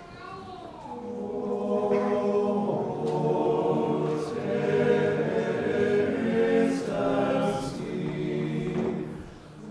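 A choir sings together loudly in a large echoing hall.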